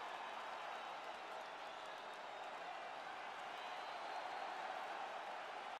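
A large arena crowd roars and cheers steadily.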